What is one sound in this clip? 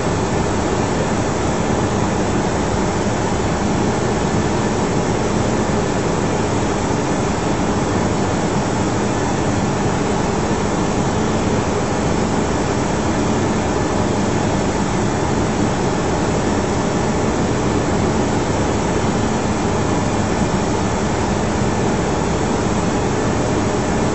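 A steady, loud roar of jet engines and rushing air fills a cockpit in flight.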